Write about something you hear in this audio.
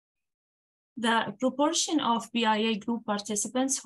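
A woman speaks calmly into a microphone over an online call.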